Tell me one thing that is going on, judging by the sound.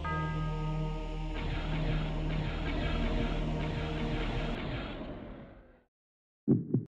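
Eerie game music plays and fades away.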